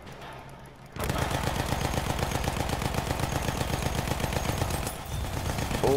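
A machine gun fires in a long, rapid burst.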